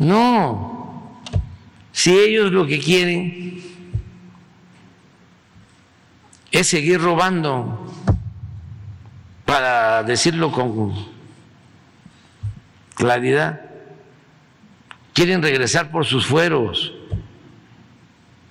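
An elderly man speaks slowly and calmly into a microphone, in short phrases with pauses, in an echoing hall.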